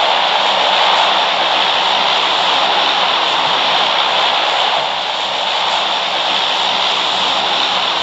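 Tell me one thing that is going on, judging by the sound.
A propeller plane's engines drone steadily.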